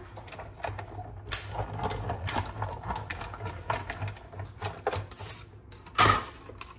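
A hand-cranked machine rumbles and clicks as its handle turns.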